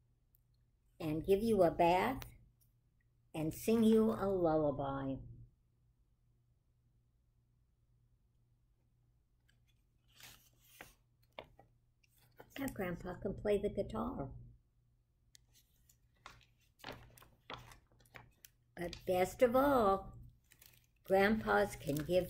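An elderly woman reads aloud slowly, close by.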